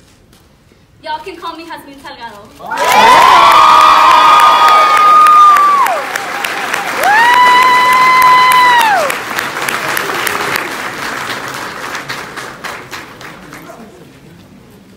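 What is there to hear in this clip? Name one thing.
A crowd of young people cheers and screams loudly in a large echoing hall.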